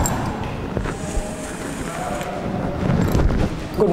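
Chalk scratches and taps on a board.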